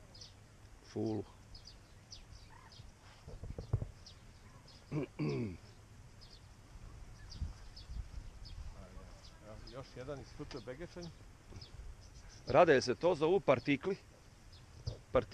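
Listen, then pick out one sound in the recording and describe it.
A man speaks close by in short, casual bursts, outdoors.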